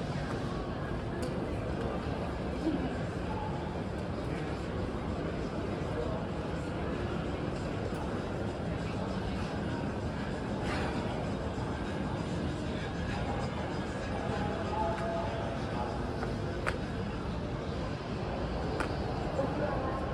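Footsteps tap on pavement close by.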